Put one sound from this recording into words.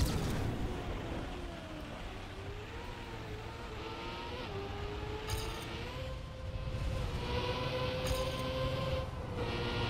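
A racing car engine whines, its pitch rising and falling as it speeds up and slows.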